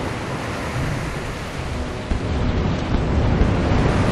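Cannons boom in the distance.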